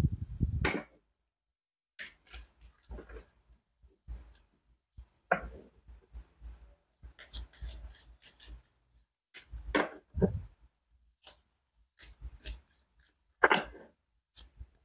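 Playing cards shuffle and slide against each other, close by.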